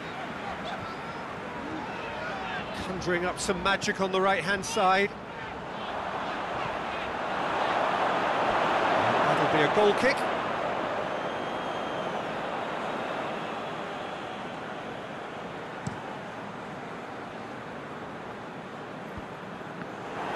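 A stadium crowd roars steadily, swelling louder for a few seconds and then settling.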